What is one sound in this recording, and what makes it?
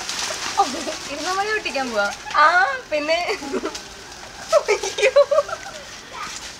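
Young women laugh and chatter close by.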